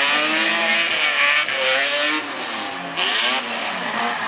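Tyres squeal on asphalt as a car drifts.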